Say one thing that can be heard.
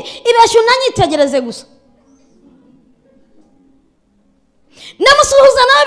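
A woman speaks with feeling into a microphone.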